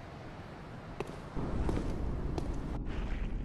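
Footsteps clack on stone.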